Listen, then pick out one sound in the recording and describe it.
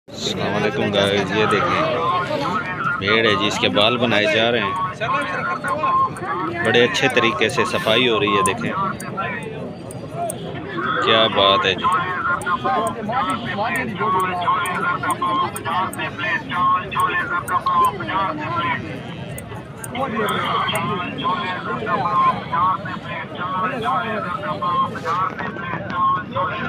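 Several men talk close by with animation.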